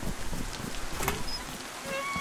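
A metal door swings open with a creak.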